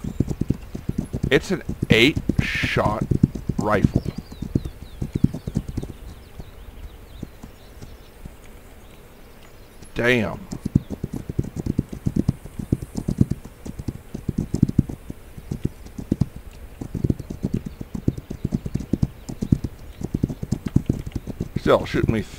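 Hooves thud rhythmically as a horse gallops.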